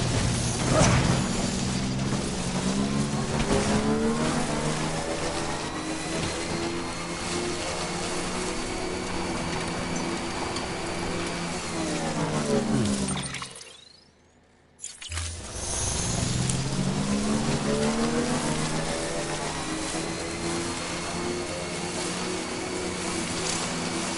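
A motorbike engine hums and revs as it rides over grass.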